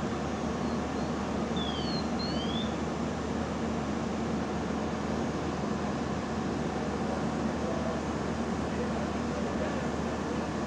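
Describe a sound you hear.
A fire engine's motor rumbles steadily nearby.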